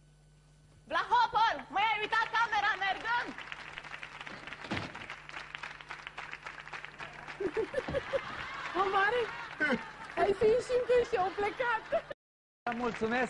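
A woman talks with animation.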